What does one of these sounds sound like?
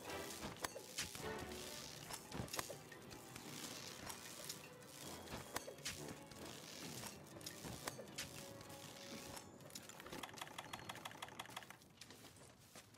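Dry vines rustle and creak as a figure climbs through them.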